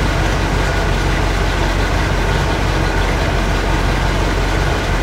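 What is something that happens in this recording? A car engine idles with a steady, deep rumble.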